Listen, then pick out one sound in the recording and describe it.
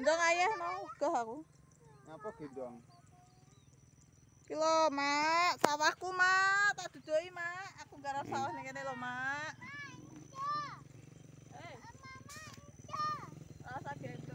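A young child talks in a high voice nearby.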